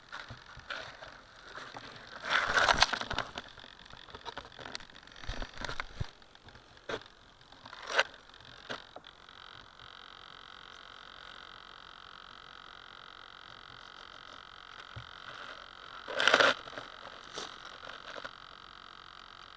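Dry grass and bracken rustle and crackle underfoot.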